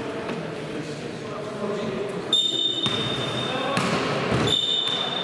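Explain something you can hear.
Sneakers squeak and thud on a hard floor in a large echoing hall.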